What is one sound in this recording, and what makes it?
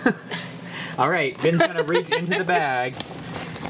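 A plastic shopping bag crinkles as it is handled.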